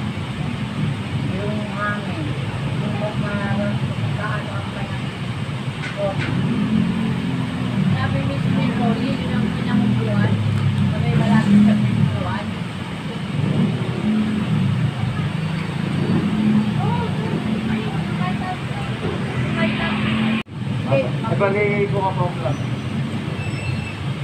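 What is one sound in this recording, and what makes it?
Several people chatter in a noisy space.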